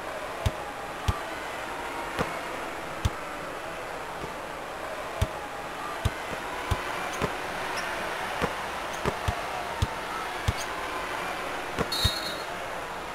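A basketball bounces on a hard floor in steady dribbles.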